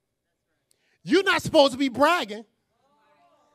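A man preaches forcefully into a microphone.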